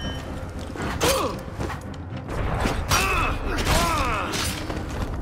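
Steel blades clash and ring sharply.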